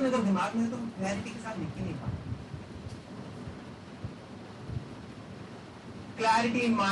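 A man lectures calmly through a microphone in a room with a slight echo.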